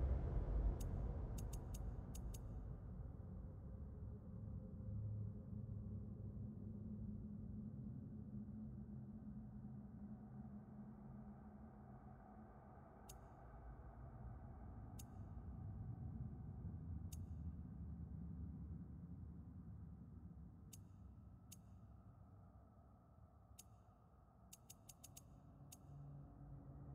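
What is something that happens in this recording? Short soft clicks sound as a menu selection moves.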